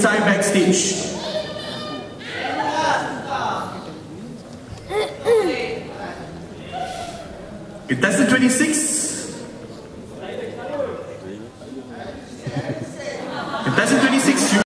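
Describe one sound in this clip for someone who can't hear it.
An audience cheers and shouts loudly in a large echoing hall.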